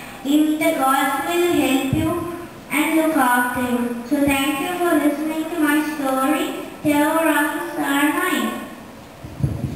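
A young boy chants steadily into a microphone through a loudspeaker.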